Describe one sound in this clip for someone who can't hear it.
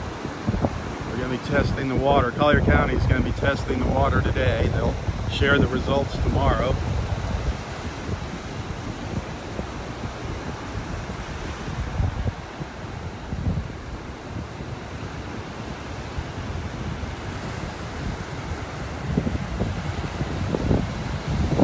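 Small waves wash gently onto a beach outdoors.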